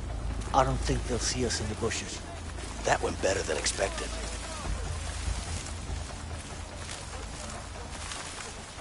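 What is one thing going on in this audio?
Leaves rustle softly as someone creeps through thick bushes.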